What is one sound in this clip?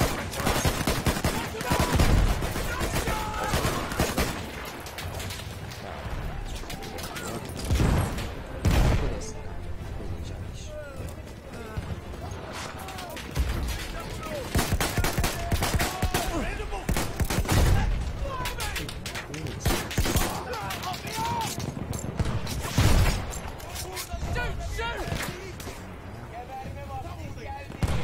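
Gunshots fire in rapid bursts, close by.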